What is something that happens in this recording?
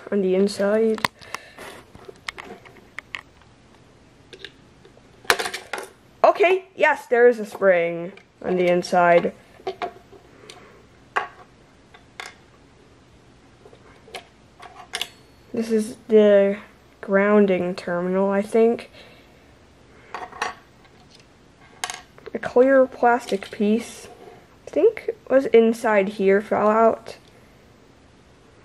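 Small plastic and metal parts click and rattle as they are handled.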